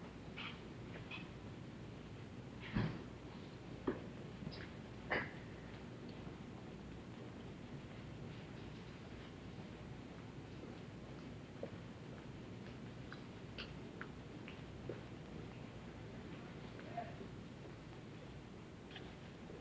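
A large outdoor crowd murmurs quietly in the distance.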